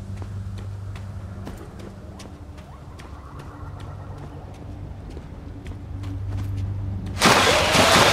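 Footsteps patter quickly on rock.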